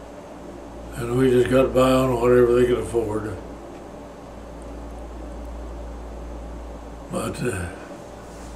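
An elderly man speaks slowly and calmly, close by.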